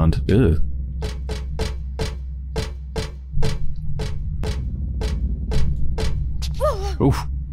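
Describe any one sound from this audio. Footsteps ring out at a steady walking pace on a hard floor.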